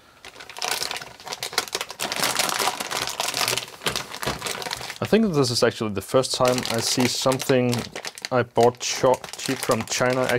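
A plastic wrapper crinkles as it is handled.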